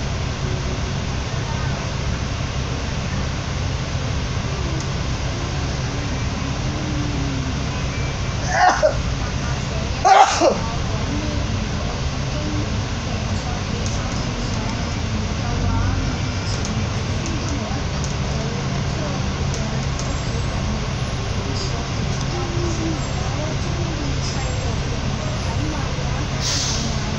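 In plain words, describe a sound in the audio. A bus engine rumbles steadily while driving in traffic.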